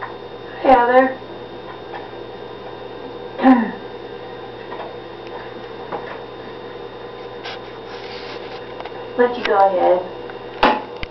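A young woman speaks in short bursts nearby.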